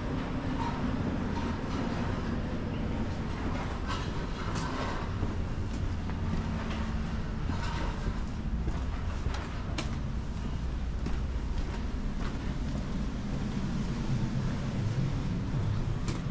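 Footsteps tap on pavement at a steady walking pace.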